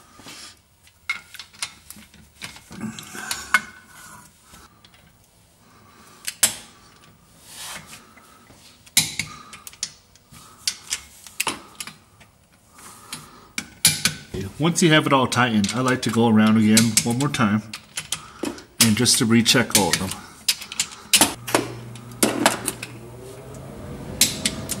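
A ratchet wrench clicks as bolts are turned.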